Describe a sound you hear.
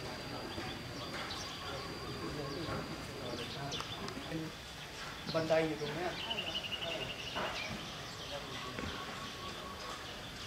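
A woman talks calmly nearby outdoors.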